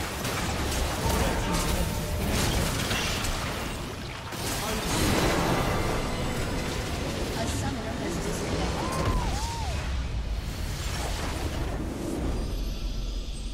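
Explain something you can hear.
Game spell effects and explosions crash and boom in a fierce battle.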